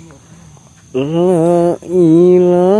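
A man chants loudly in a long, drawn-out voice.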